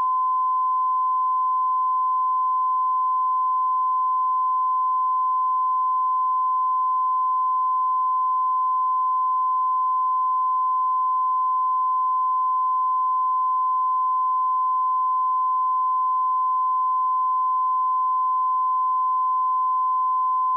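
A steady, high-pitched test tone sounds without a break.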